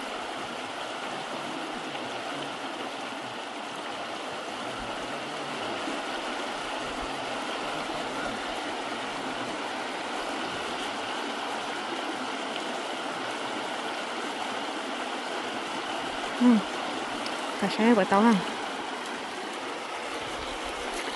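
A shallow stream rushes and gurgles over rocks.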